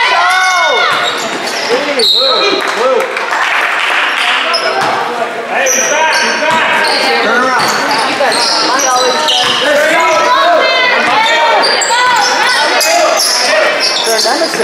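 Spectators murmur and call out in a large echoing gym.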